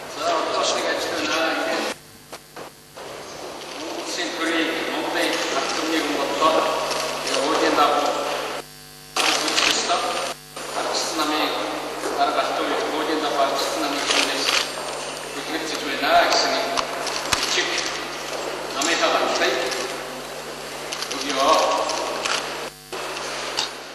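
A man speaks steadily into a microphone, heard through loudspeakers in an echoing hall.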